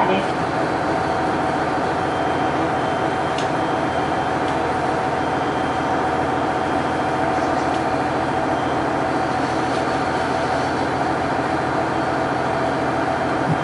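A diesel train engine idles with a steady low rumble and hum.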